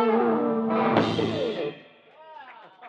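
A live band plays electric guitars and drums loudly, then stops.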